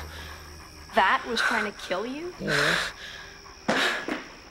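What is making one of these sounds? A boy cries out in distress.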